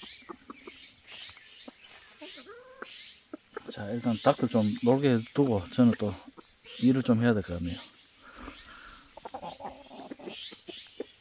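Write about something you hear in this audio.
Hens cluck softly.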